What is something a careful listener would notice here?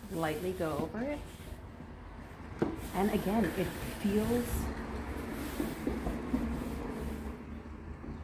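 A hand rubs softly across a wooden tabletop.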